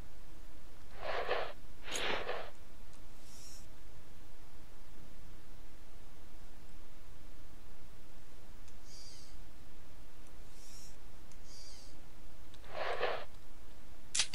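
Gear rustles briefly.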